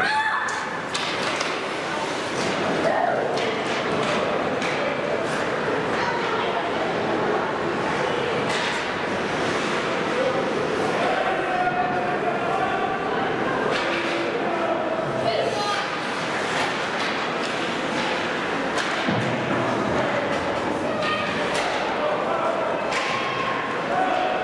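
Players shout to each other, echoing in a large hall.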